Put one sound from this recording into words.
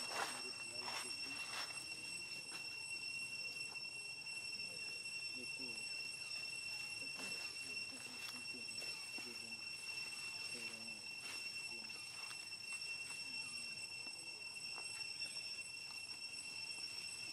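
Dry leaves rustle and crackle under a small monkey's feet.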